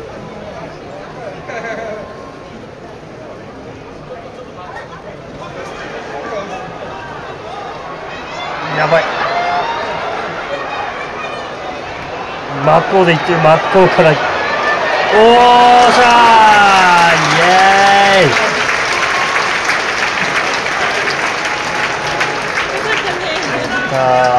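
A large crowd murmurs and then cheers loudly in a big echoing hall.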